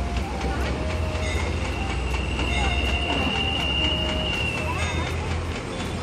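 A vehicle horn honks.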